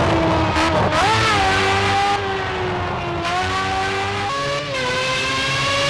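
An open-wheel racing car shifts gears at speed.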